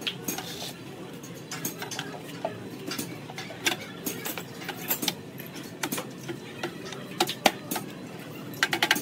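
Metal tools tap and knock against a metal radiator.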